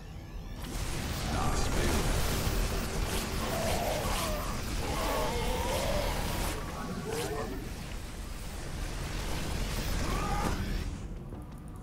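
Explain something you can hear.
Explosions boom during a battle.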